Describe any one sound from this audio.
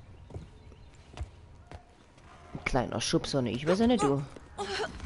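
A young woman grunts with effort.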